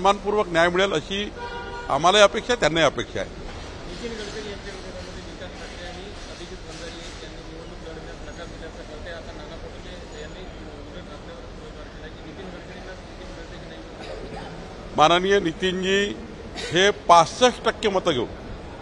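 A middle-aged man speaks close to a microphone, with pauses.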